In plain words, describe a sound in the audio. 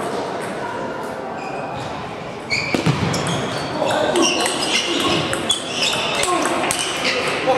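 A table tennis ball clicks back and forth off paddles and the table in a large echoing hall.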